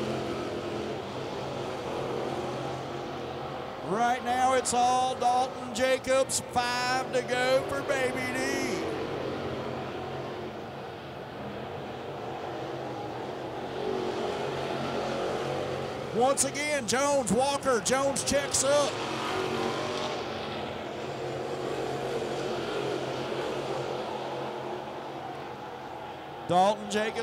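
Race car engines roar steadily.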